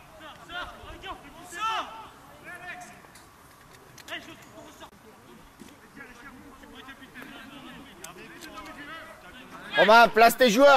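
Young men shout to one another across an open outdoor field.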